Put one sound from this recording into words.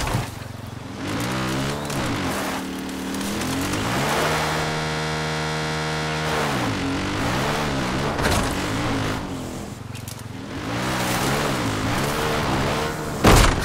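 Tyres crunch over rocks and dirt.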